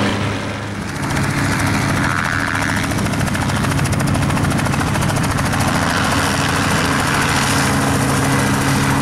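A second helicopter's engine drones and its rotor chops.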